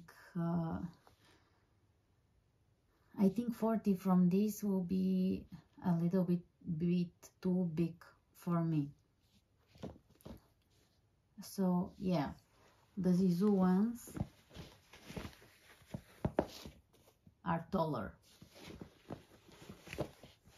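Hands rub and rustle against fleece-lined boots.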